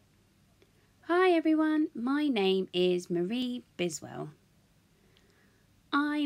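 A woman speaks with animation, close by.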